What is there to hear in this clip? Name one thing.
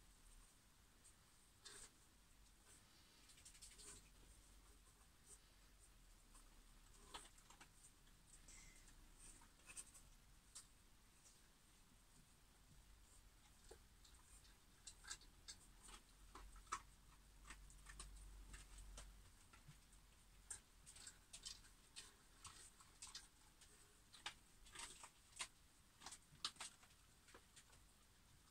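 A brush dabs and scratches softly on paper.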